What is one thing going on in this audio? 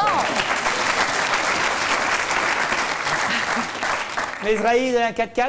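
A studio audience laughs.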